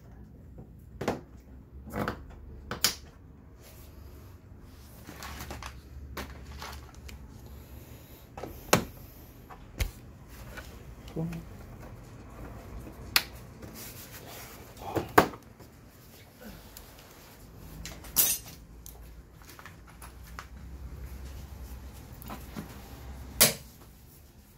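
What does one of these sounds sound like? Plastic scooter body panels click and knock as hands press them into place.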